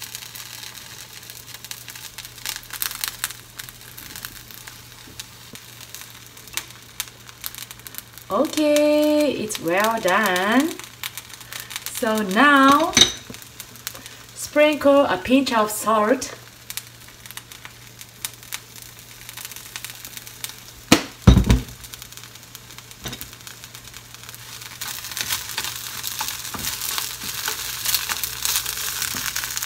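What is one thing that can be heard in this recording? Chopsticks tap against a frying pan.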